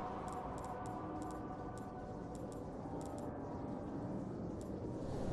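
Short soft interface ticks sound as a cursor moves across menu items.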